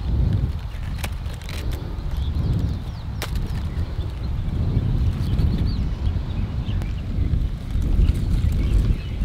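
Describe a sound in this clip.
Leaves rustle as hands pick among vines.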